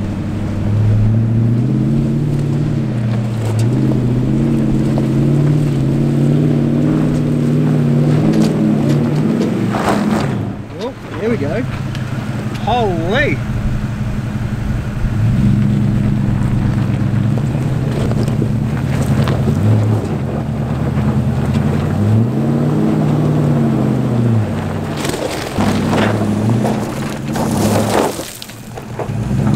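A vehicle engine rumbles and revs.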